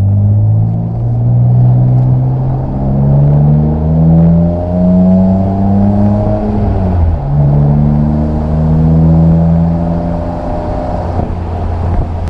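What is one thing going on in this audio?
A straight-six sports car engine accelerates through the gears.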